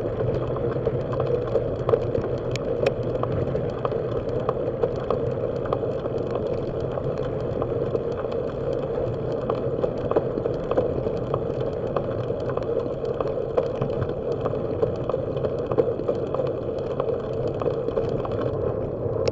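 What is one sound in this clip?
Wind rushes steadily past a moving bicycle outdoors.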